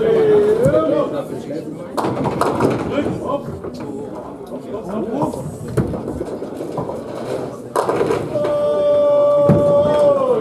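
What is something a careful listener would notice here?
Pins clatter as they are knocked over.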